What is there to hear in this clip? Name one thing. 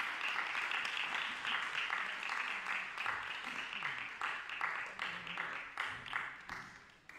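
Hands clap in steady applause in an echoing hall, then fade.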